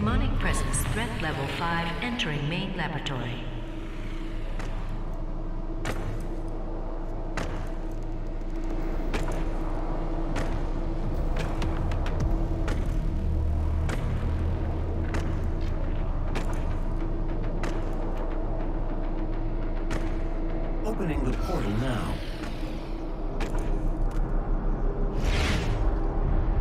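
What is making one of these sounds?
A portal crackles and roars open.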